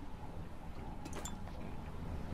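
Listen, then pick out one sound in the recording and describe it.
A small metal object clinks as it is picked up.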